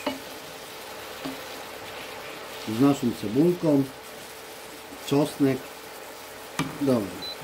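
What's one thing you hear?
A wooden spatula scrapes and stirs food in a pan.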